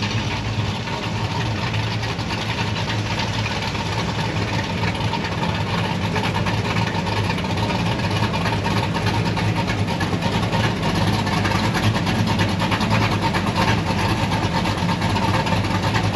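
A big car engine rumbles deeply as it rolls slowly past.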